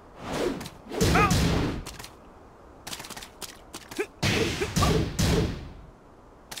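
Punches and kicks land with heavy thuds and whooshes.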